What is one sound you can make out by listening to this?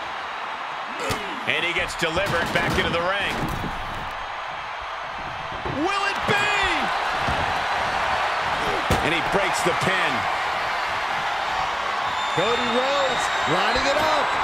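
Wrestlers' bodies slam down onto a mat with heavy thuds.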